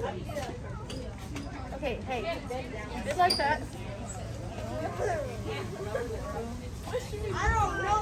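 Several children talk and chatter nearby, outdoors.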